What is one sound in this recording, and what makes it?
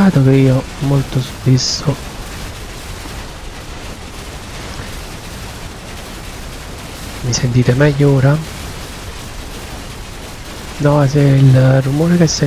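A man talks into a close microphone with animation, in short bursts.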